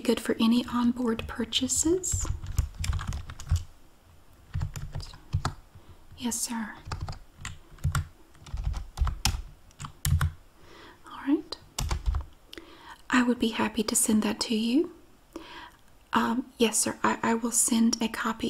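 Keys clatter on a keyboard.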